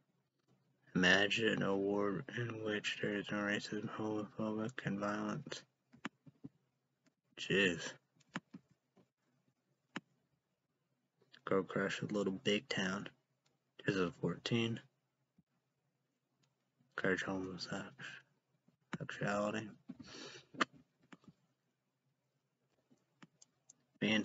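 A young man talks calmly and close into a microphone, in bursts with pauses.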